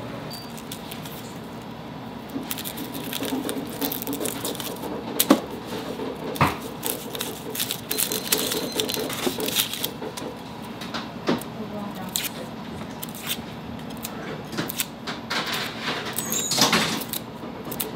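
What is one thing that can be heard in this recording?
A knife scrapes and crackles against dry onion skin.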